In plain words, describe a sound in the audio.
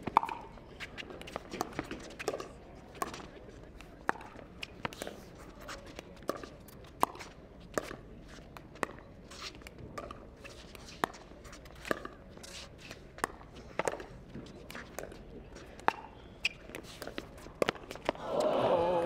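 Paddles strike a plastic ball back and forth in a quick rally.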